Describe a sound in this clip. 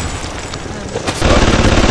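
Electric sparks crackle and buzz.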